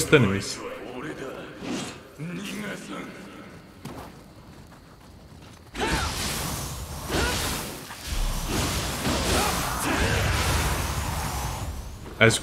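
Blades swing and clash in a fight.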